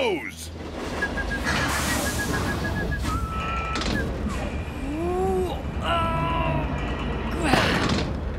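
A crane motor whirs as it lifts a heavy load.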